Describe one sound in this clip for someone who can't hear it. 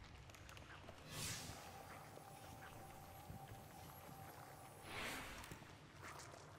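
A soft whoosh sounds as a game menu opens and closes.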